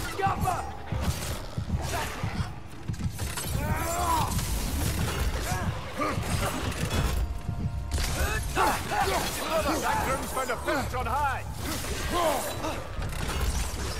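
Heavy axe blows thud and clang in a fight.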